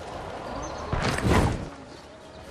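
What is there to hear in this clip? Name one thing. Feet land with a heavy thud.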